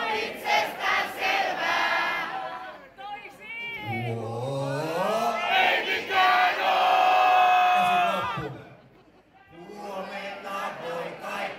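A large crowd sings along loudly in a big echoing hall.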